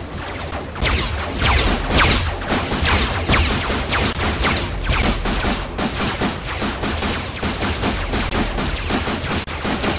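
Swords swish and strike repeatedly in a fight.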